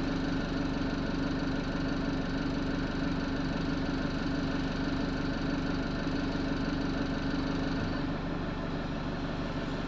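A bus engine hums steadily with a low drone.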